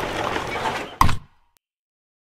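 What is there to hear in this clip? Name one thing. A game tile snaps into place with a short thud.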